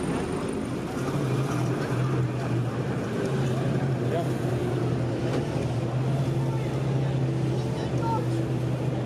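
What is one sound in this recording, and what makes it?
A military truck engine rumbles steadily close by.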